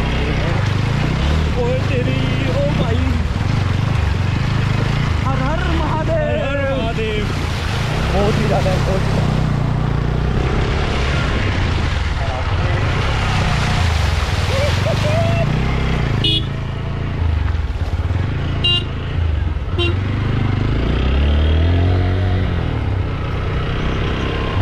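A motorcycle engine hums and rumbles steadily.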